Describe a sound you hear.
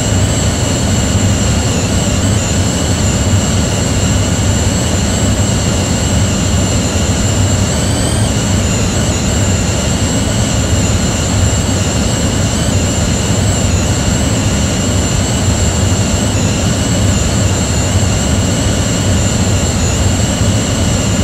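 Jet engines roar with a steady whine throughout.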